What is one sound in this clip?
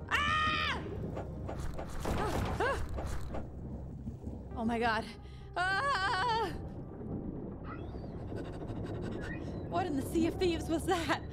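A young woman speaks with animation into a close microphone, with high squeals and exclamations.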